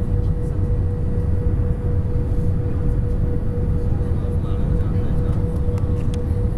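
Jet engines roar steadily with a low rumble inside an airliner cabin.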